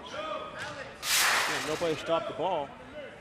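A referee's whistle blows sharply in an echoing gym.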